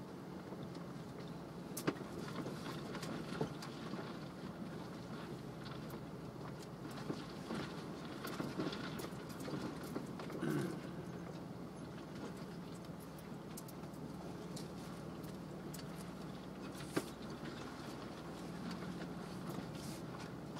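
A car engine rumbles steadily from inside the cabin.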